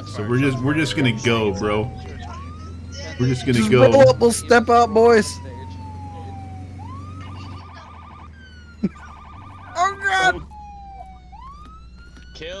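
A police siren wails, slowly falling and then rising in pitch.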